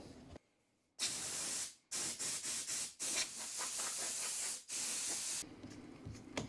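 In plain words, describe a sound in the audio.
Compressed air hisses loudly in short bursts from an air gun.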